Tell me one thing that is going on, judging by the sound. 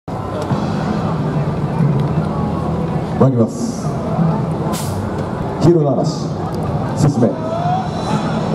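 Hand drums are struck by marching performers.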